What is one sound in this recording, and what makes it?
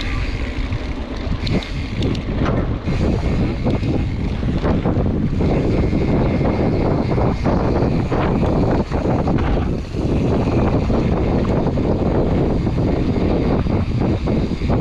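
A bicycle rattles and clanks over bumps.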